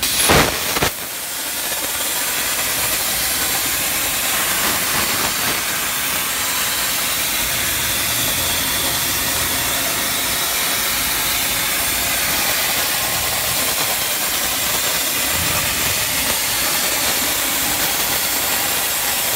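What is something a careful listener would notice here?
A plasma cutting torch cuts through steel with a loud, steady hiss.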